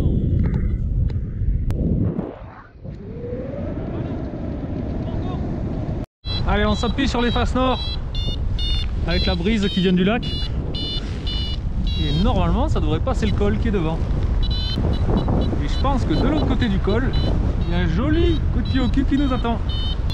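Wind rushes and buffets loudly past the microphone.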